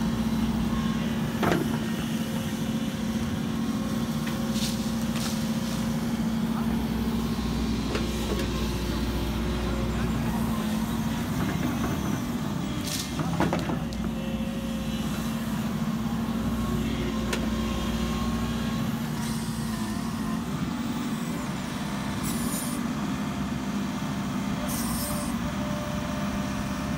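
An excavator bucket scrapes and thuds into soil.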